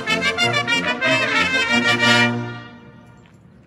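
A military brass band plays a sustained chord outdoors.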